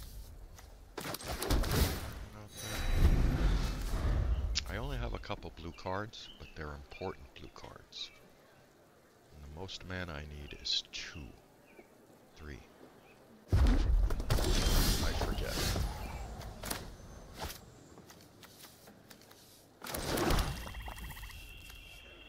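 Fantasy game sound effects whoosh and thud as cards are played.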